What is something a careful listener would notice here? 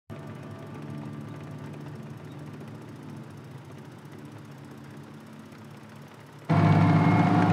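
Tank engines rumble faintly in the distance.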